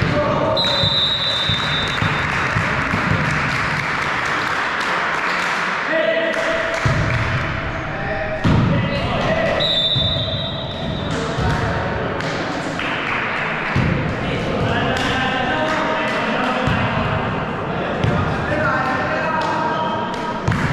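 A volleyball thumps off players' hands and arms in a large echoing gym.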